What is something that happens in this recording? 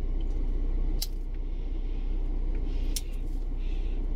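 A lighter clicks and flares.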